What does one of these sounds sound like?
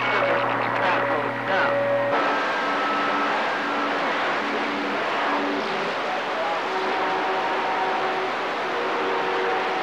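Faint whistling tones drift through a radio receiver's static.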